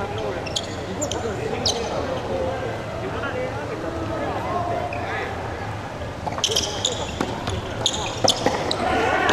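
Paddles strike a ball with sharp pops in an echoing hall.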